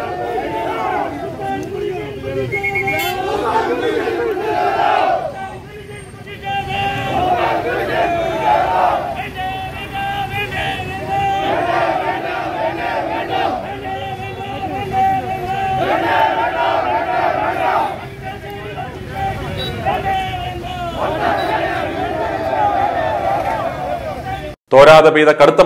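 Men in a crowd chant loudly together outdoors.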